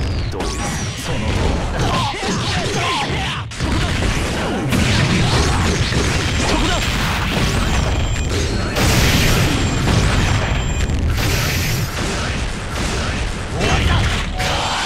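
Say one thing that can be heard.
Energy blasts roar and crackle in bursts.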